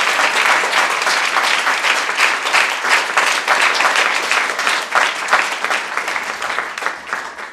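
An audience applauds loudly in a large room, gradually easing off.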